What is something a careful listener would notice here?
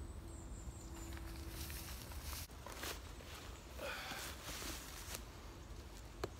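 Fabric rustles and dry leaves crunch close by.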